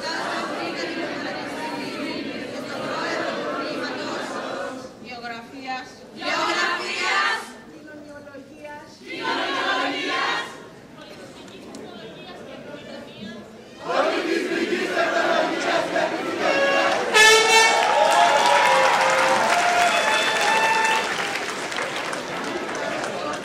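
A large choir of young men and women sings together in an echoing hall.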